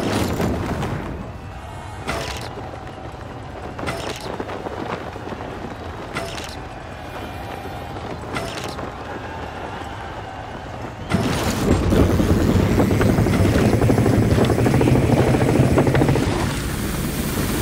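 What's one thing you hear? Wind rushes loudly past a gliding wingsuit flyer.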